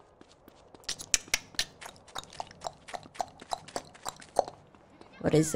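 Footsteps pound quickly on hard ground.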